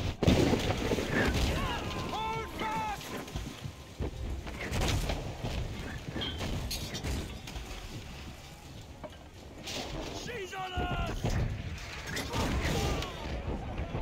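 A man shouts urgently over the storm.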